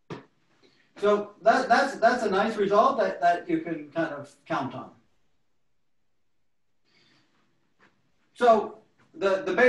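A young man speaks calmly and clearly, explaining, close by.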